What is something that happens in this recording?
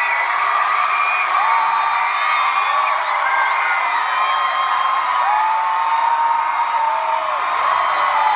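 Young women shriek in high-pitched voices close by.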